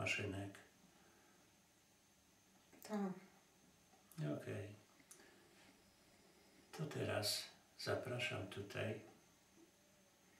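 An elderly man speaks slowly and calmly in short phrases, close by.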